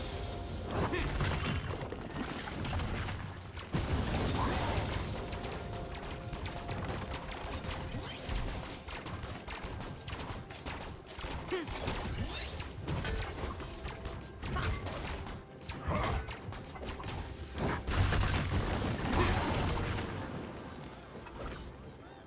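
Spell effects whoosh and crackle in a busy fight.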